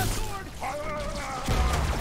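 Energy weapons fire in quick bursts.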